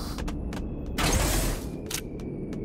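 A heavy chest bursts open with a loud whoosh.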